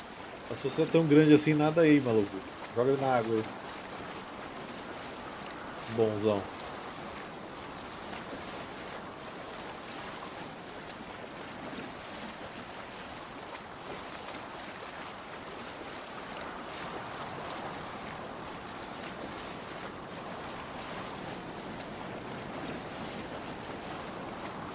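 Waves and wind rush steadily around a sailing boat.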